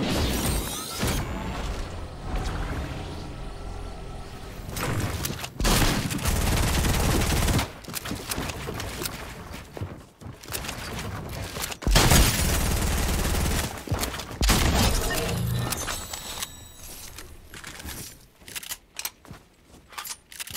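Building pieces snap into place with quick wooden clatters.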